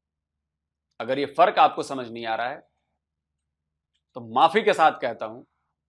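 A man speaks calmly in short phrases, heard as if through a small speaker.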